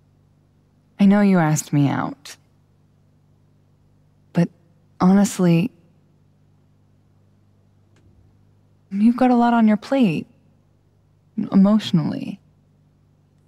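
A young woman speaks softly and hesitantly, in short phrases.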